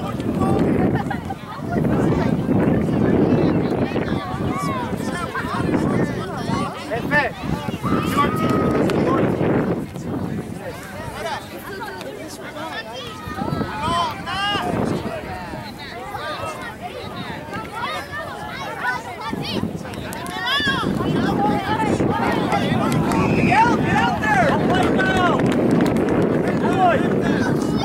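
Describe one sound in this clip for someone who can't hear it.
Children shout to each other across an open field.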